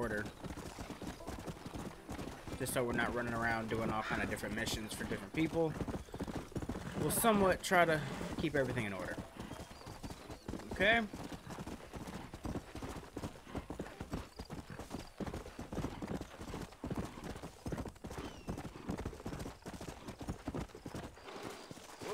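Horse hooves thud on dry ground at a steady gallop.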